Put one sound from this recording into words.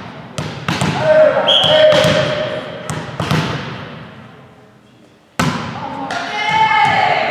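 Young women shout and cheer on the court.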